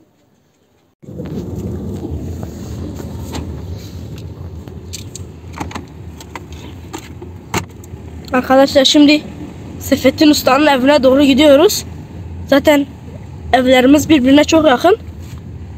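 A car engine hums steadily from inside the moving car.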